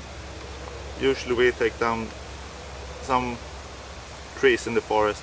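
An older man speaks calmly and close by, in short phrases.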